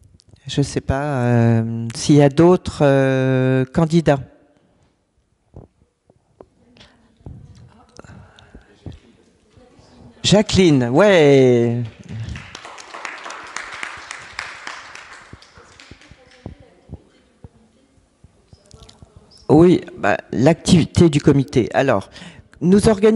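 An older man speaks calmly into a microphone, with pauses between phrases.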